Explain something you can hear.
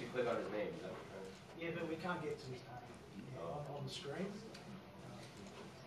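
A man talks in a room with a slight echo.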